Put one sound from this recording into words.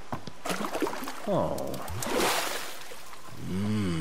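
A fishing reel whirs as a line is reeled in.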